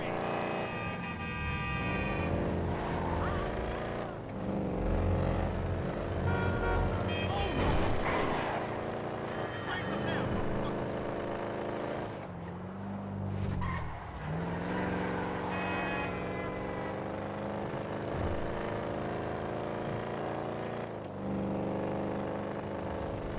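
A car engine hums and revs as the car drives along a road.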